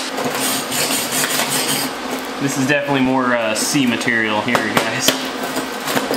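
A hammer chips and taps sharply on metal.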